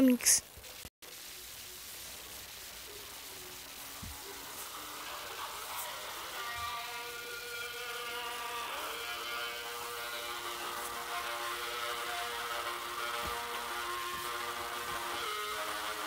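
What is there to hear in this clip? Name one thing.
Synthesizer music plays quietly and slowly builds up.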